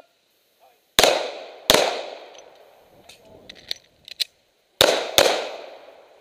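A pistol fires sharp, loud shots that echo outdoors.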